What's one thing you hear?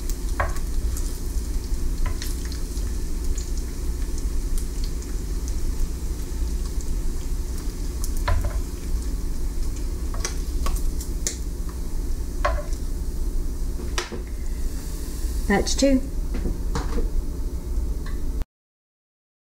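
Metal tongs click and clatter against a pan.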